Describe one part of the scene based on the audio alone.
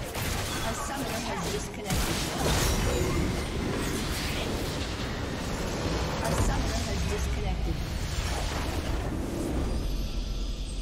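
Spell blasts and hits crackle and boom in a fierce fight.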